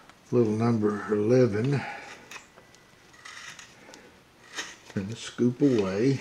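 A knife blade shaves and scrapes wood in short strokes.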